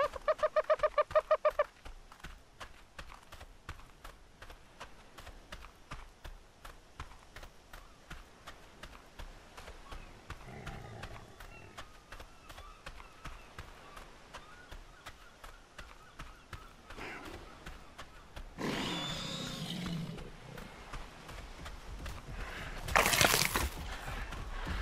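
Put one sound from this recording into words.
Footsteps thud quickly on sandy ground.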